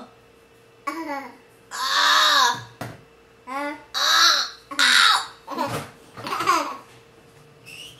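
A small child squeals and laughs close by.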